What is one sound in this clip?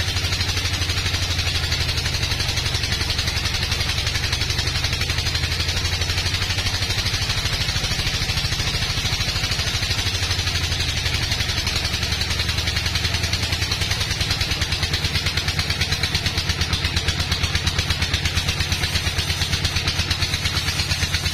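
A sawmill motor hums and throbs steadily.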